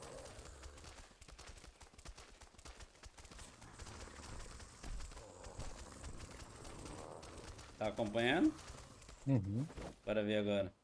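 An animal's feet patter softly over grass.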